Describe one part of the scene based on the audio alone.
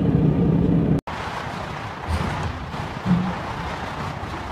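Traffic roars by steadily on a busy highway.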